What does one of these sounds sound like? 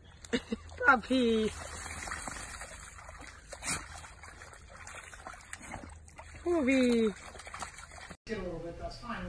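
A dog splashes and paddles through a muddy puddle.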